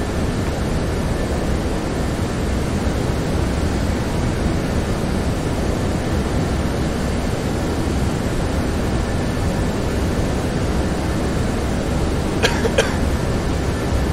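Jet engines hum steadily with a low rumble.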